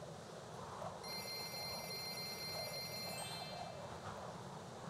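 Bright game chimes ring as gems are counted up.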